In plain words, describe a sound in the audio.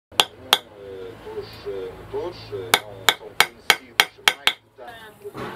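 A small hammer taps sharply on metal.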